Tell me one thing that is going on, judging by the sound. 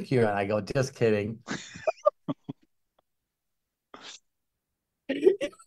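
A middle-aged man laughs loudly over an online call.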